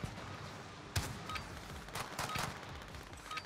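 Gunshots crack nearby.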